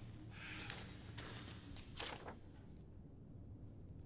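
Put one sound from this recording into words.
A sheet of paper rustles as it is picked up.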